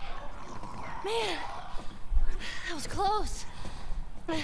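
A young girl speaks softly, out of breath.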